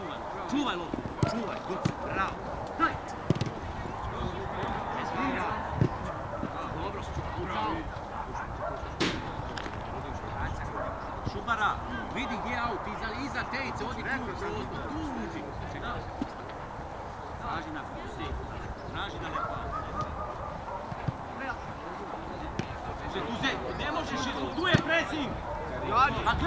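Adult men shout to each other across an open field outdoors.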